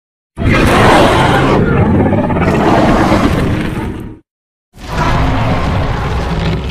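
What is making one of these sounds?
A large dinosaur roars loudly and deeply.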